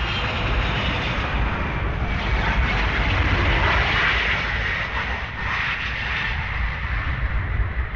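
A jet airliner roars loudly as it speeds down a runway.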